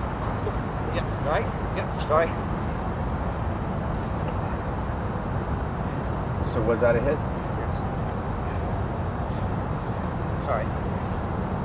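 A man calls out briefly.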